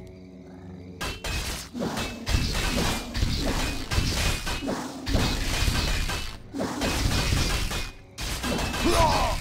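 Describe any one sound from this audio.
Swords and axes clash and clang in a battle.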